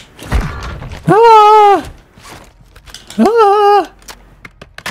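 A young man shouts excitedly into a microphone.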